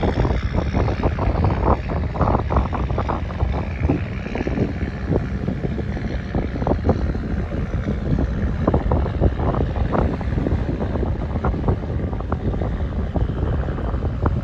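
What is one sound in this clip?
A boat engine rumbles steadily across the water.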